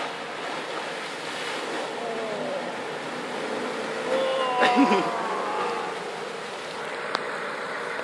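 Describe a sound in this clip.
Muddy water splashes under tyres.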